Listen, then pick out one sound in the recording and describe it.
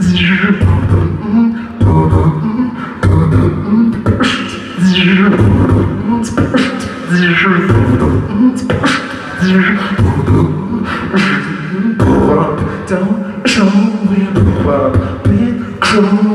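A man beatboxes rhythmically into a microphone, heard through loudspeakers.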